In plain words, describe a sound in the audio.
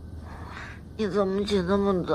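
A young woman whines sleepily and speaks in a groaning voice close by.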